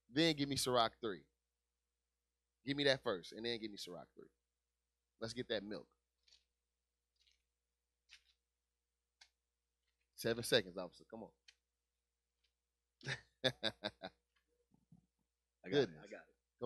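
A man speaks into a close microphone in short bursts with pauses.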